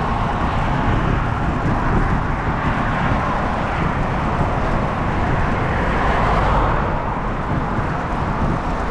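Tyres roll steadily on an asphalt road.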